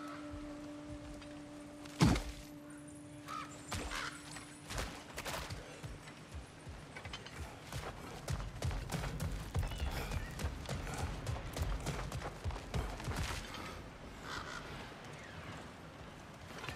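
Heavy footsteps thud and crunch on stone and wooden boards.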